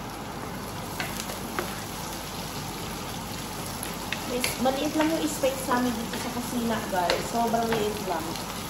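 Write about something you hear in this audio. A wooden spoon scrapes and taps against a frying pan.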